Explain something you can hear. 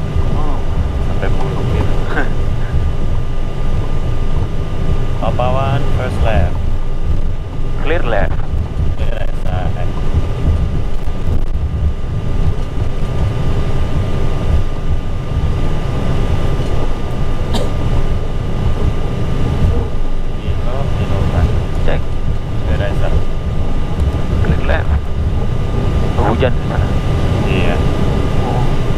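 A jet airliner's engines rumble and whine steadily while it taxis.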